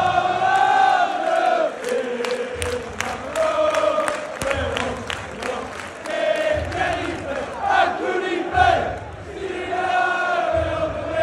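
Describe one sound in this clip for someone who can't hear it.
A crowd claps in rhythm.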